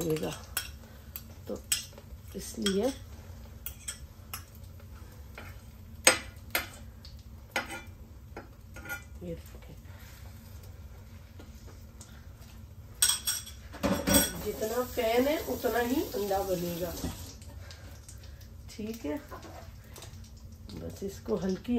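A utensil clinks and taps against a pan.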